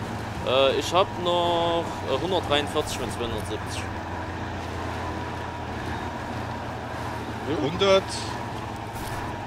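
A truck engine hums low and steadily.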